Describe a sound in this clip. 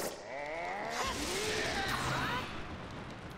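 A shimmering magical sound effect swirls and rises in pitch.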